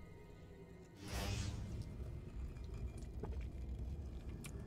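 Flames burst up with a whoosh.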